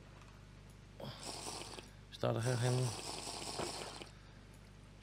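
A potion is gulped down in quick swallows.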